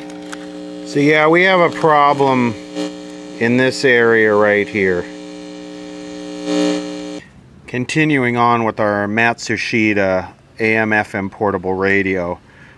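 A man's voice talks through a small radio loudspeaker.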